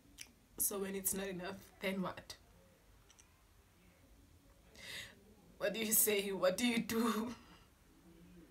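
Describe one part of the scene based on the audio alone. A young woman speaks close by, slowly and with pauses.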